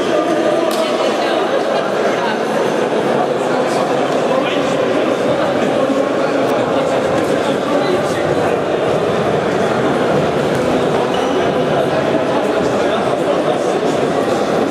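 A crowd of men chatters in a large echoing hall.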